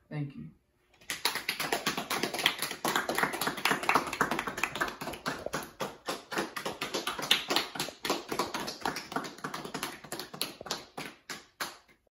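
A small group of people applauds with clapping hands.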